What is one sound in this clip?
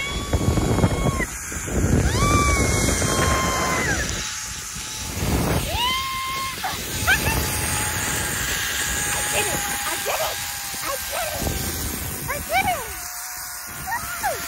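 Wind rushes past the microphone.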